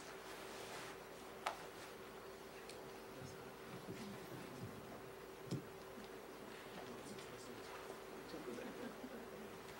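A woman speaks softly into a microphone.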